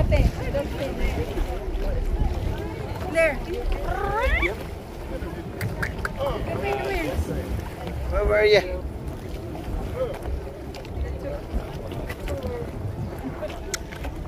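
Waves slosh and splash against the side of a moving boat.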